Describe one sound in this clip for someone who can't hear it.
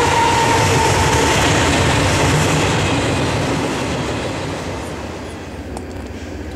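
A freight train rumbles and clatters past on the tracks, then fades into the distance.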